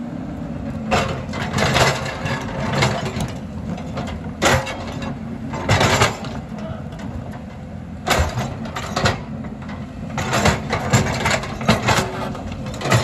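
Soil and stones scrape and tumble from an excavator bucket.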